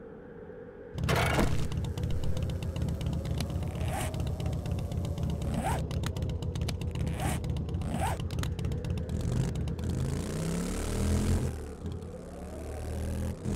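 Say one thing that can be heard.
A motorbike engine starts and runs with a steady, throaty rumble.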